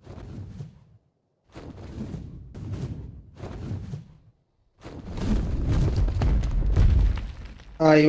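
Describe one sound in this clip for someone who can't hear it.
Large leathery wings flap in slow beats.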